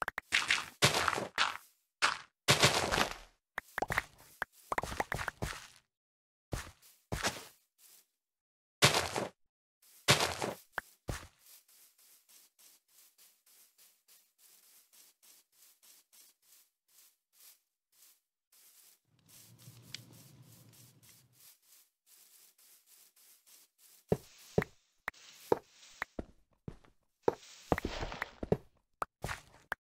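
Blocks of dirt break with crumbly crunches in quick bursts.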